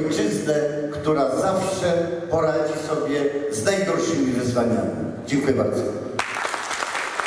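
An elderly man speaks into a microphone over loudspeakers.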